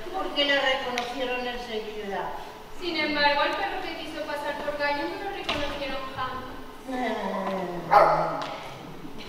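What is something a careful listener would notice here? A man sings theatrically in a large echoing hall.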